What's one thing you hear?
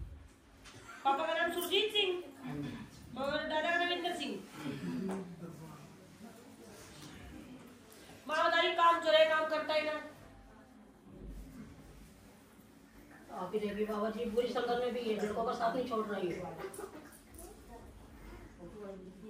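A woman sings a chant through a microphone in phrases with pauses.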